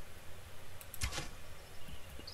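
A bowstring twangs sharply as an arrow is loosed.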